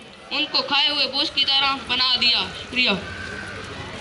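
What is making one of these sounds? A boy recites loudly through a microphone and echoing loudspeaker.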